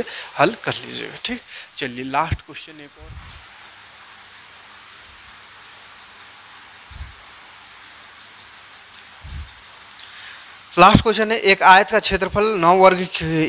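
A man speaks steadily through a close microphone.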